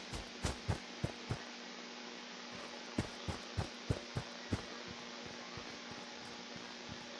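Footsteps crunch steadily on dry dirt.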